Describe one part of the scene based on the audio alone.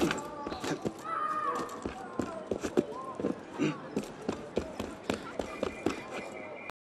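Footsteps patter quickly over roof tiles.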